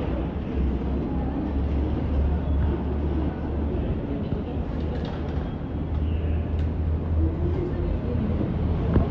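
A low rumble fills a large echoing garage.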